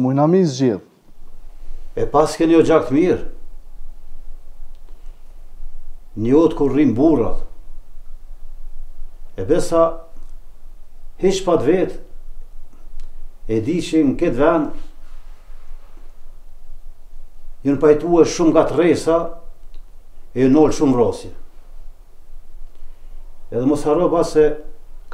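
An elderly man talks calmly in short phrases, close by.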